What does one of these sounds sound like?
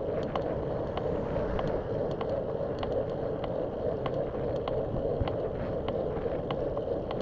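Tyres roar steadily on the road as a car drives along at speed.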